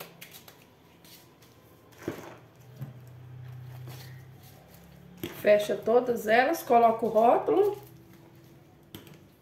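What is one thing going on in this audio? Latex gloves rustle and snap as they are pulled on.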